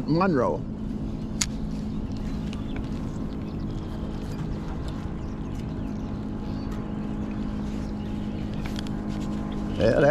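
A fishing reel whirs softly as line is wound in.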